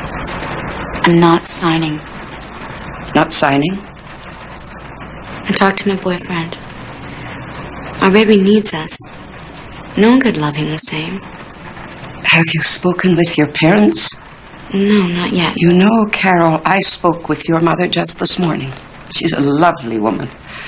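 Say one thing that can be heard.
An elderly woman speaks calmly and slowly nearby.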